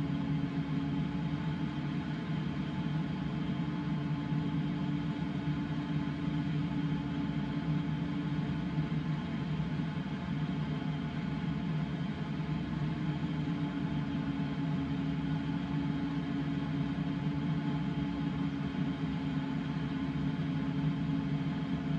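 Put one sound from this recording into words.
Wind rushes steadily past a glider's canopy.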